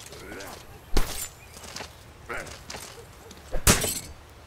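Swords clash with loud metallic strikes.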